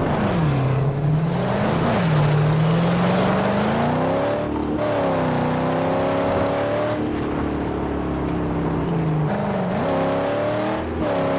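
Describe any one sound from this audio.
A car engine roars and revs up and down as it drives.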